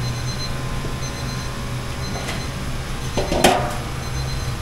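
A metal steamer lid clanks as it is lifted.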